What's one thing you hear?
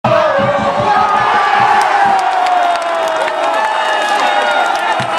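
A large stadium crowd cheers and chants loudly all around.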